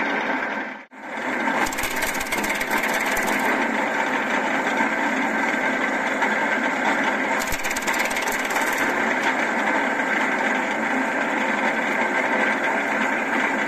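A wood chipper motor roars steadily close by.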